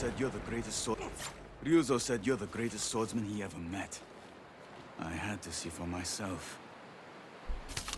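A man speaks calmly in a low voice.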